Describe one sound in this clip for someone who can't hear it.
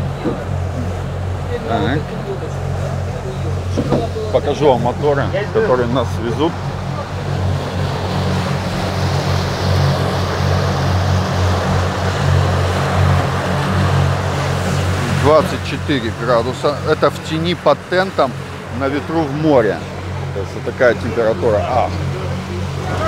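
An outboard motor hums steadily.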